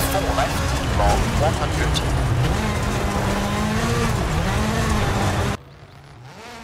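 A rally car engine roars and revs close up from inside the cabin.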